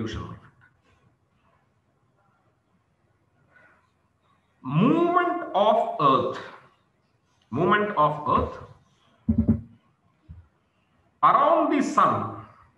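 A man speaks calmly through a microphone, lecturing in short bursts.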